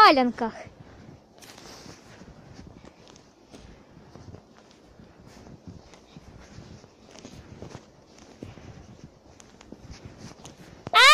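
Boots crunch through snow in steady footsteps.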